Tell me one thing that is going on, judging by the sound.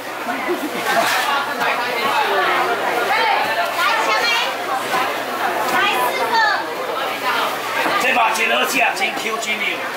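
A crowd of men and women chatter all around.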